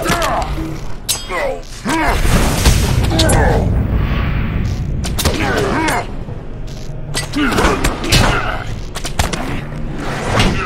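Blades strike and clang in quick blows.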